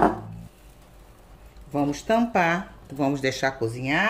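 A glass lid clinks onto a frying pan.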